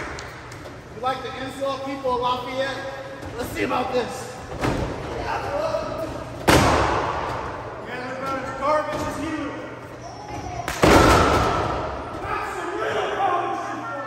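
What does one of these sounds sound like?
Spectators shout and cheer nearby in an echoing hall.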